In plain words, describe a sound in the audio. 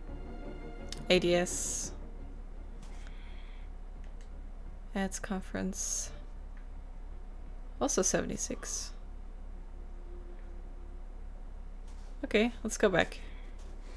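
A young woman speaks into a close microphone in short, calm bursts.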